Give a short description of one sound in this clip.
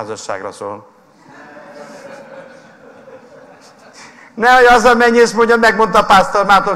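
A middle-aged man speaks loudly with animation into a microphone.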